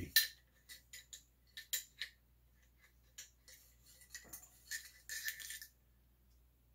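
Metal parts of a rifle click and rattle as they are handled.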